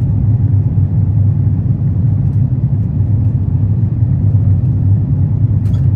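An airliner's engines and rushing air roar in a steady, deep drone inside the cabin.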